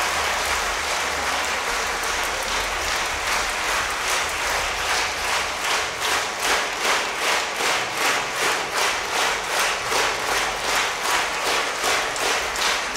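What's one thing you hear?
An audience applauds in a large hall, falling into rhythmic clapping.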